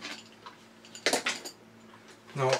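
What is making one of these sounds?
A plastic toy clacks as it is picked up.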